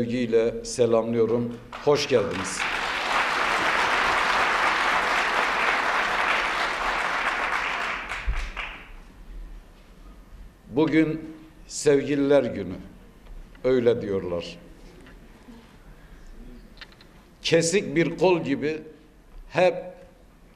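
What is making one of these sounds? A man speaks forcefully through a microphone in a large echoing hall.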